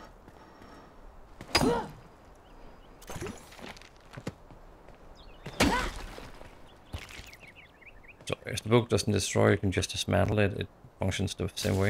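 An axe chops into wood with sharp thuds.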